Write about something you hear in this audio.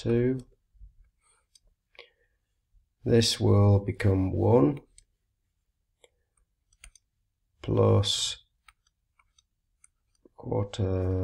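An older man speaks calmly into a microphone, explaining in short phrases.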